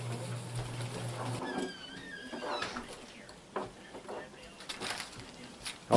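Paper rustles on a wooden table.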